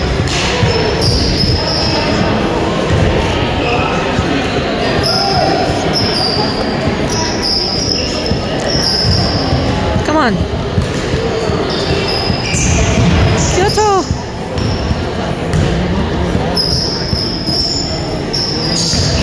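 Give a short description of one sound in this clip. Young players shout and call out to each other in a large echoing gym.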